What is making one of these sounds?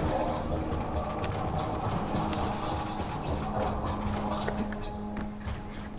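Footsteps clatter across a metal roof.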